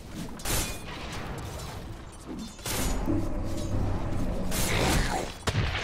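Fantasy battle sound effects clash and crackle as heroes fight.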